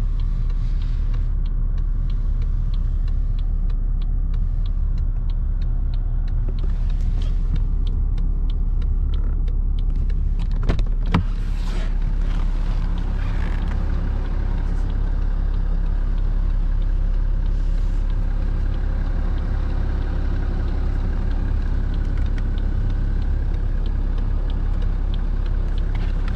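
A car's hazard indicator ticks steadily and quickly.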